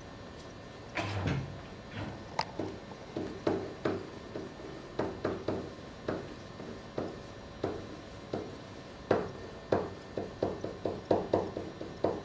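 A marker taps and squeaks on a board while writing.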